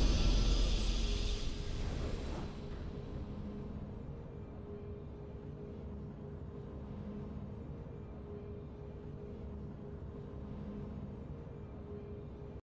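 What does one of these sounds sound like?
A game's triumphant victory music plays softly.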